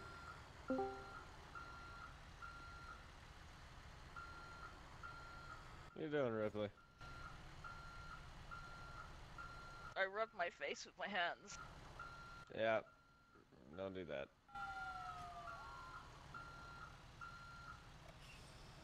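A truck's reversing alarm beeps in a steady, even rhythm.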